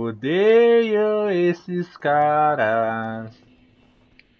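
A young man sings out in long, drawn-out notes close to a microphone.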